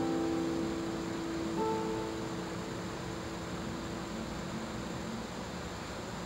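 A classical guitar plays soft plucked notes that ring out and fade.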